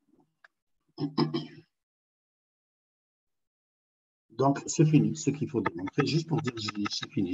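A man explains calmly over an online call.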